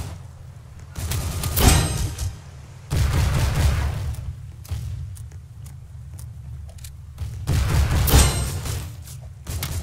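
Heavy explosions boom.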